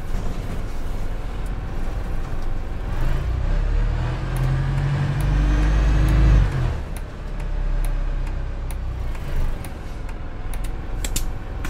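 A bus engine hums and whines as the bus drives and slows down.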